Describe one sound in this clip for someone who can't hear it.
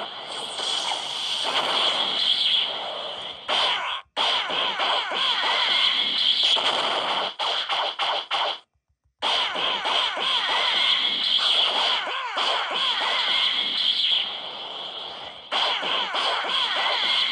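Energy blasts whoosh and crackle in a fast game fight.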